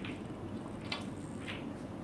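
A snooker cue taps a ball with a soft click.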